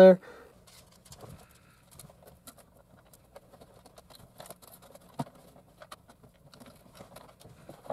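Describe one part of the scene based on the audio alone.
Hands rustle and knock softly against plastic parts.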